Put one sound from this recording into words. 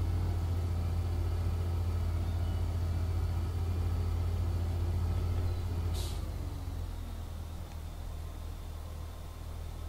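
A loader's diesel engine rumbles steadily as the loader drives, then settles to a lower idle.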